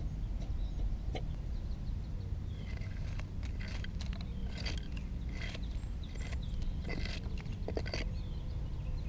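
A knife shaves and scrapes wood with short crisp strokes.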